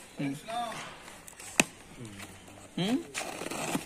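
Tape peels and crackles off a cardboard box.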